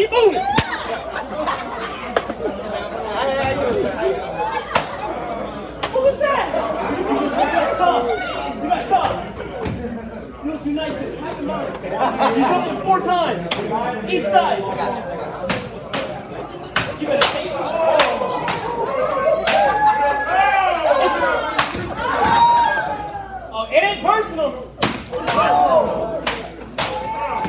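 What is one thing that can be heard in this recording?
A crowd of men and women chatter all around in a large echoing hall.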